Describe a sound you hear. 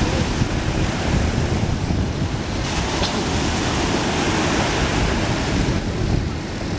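Wind blows outdoors, buffeting loudly.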